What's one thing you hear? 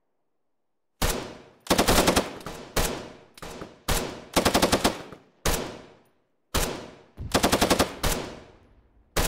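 Gunfire cracks out in sharp single shots and rapid bursts, each echoing away.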